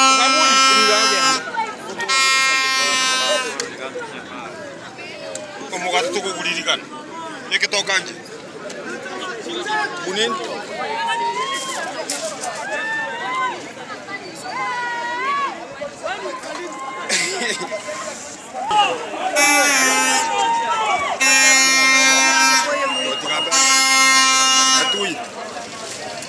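A crowd of men shouts and chatters outdoors.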